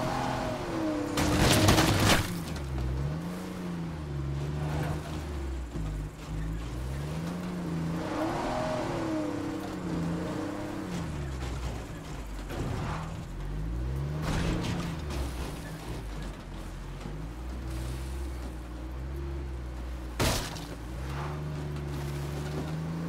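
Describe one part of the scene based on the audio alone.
A van engine hums and revs up and down as it drives.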